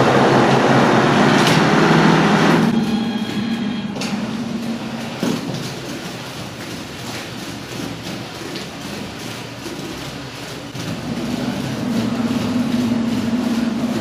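Wet plaster sprays and spatters onto a wall.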